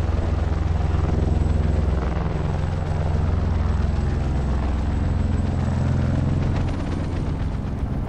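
Helicopter rotors drone loudly and steadily.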